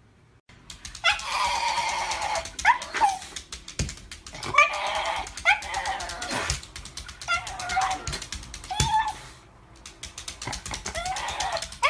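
A dog howls and yowls in long, wavering cries close by.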